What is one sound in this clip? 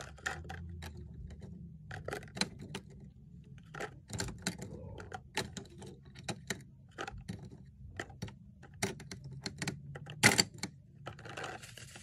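Small plastic items click and tap against a plastic bin.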